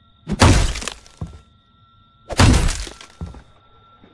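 An axe chops heavily into a wooden door.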